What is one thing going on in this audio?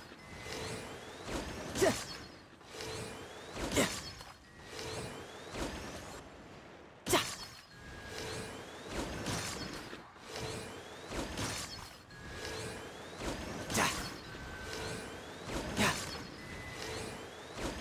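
Bowstrings snap as arrows are loosed again and again.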